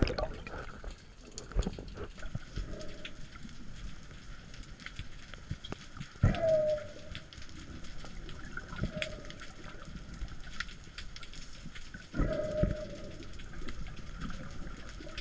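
Muffled underwater rumbling and bubbling goes on.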